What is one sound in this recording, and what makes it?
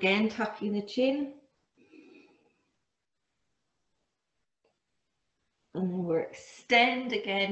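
A woman speaks calmly into a nearby microphone, with pauses.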